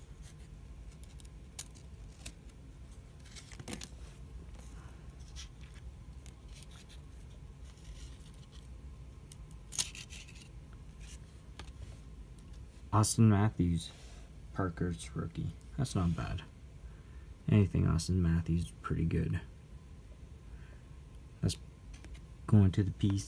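Trading cards rustle and flick softly between fingers.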